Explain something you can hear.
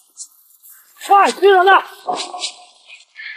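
Several men shout urgently to each other.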